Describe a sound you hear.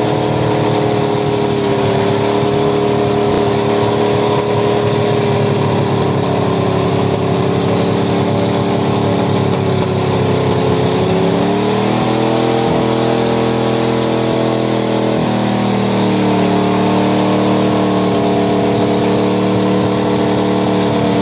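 A pickup truck's engine roars at high revs as it churns through deep mud.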